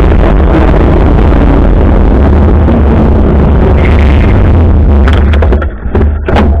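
Wind rushes loudly over the microphone.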